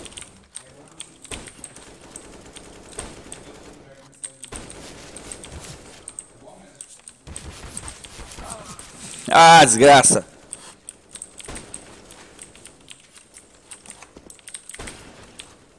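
Sniper rifle shots crack sharply in a video game.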